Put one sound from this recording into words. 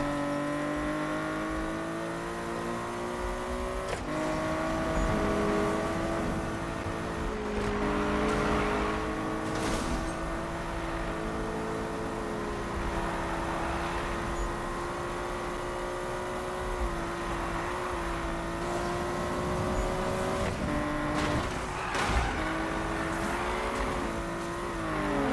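A racing car engine roars at high revs, shifting gears as it speeds along.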